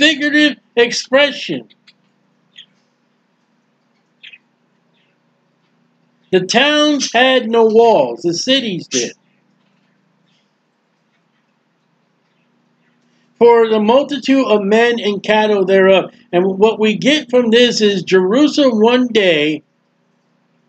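A middle-aged man speaks steadily into a microphone, in short bursts with long pauses.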